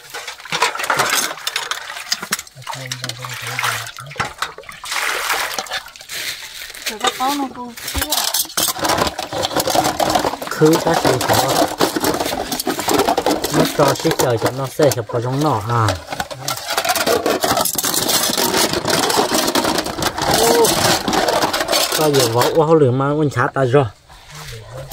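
Water splashes and sloshes in a basin as dishes are washed.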